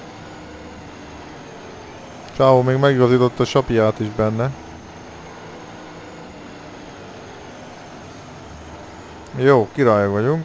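A heavy truck engine rumbles steadily at low speed.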